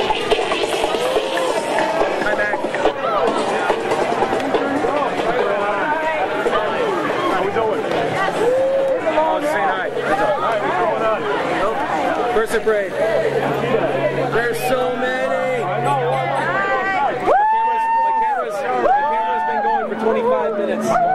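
A crowd of men and women chatters and cheers loudly in a large echoing hall.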